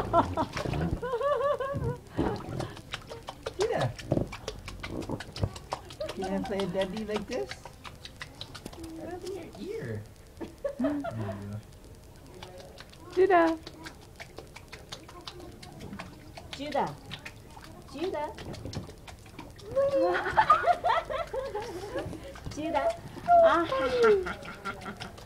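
Water splashes and sloshes in a small pool.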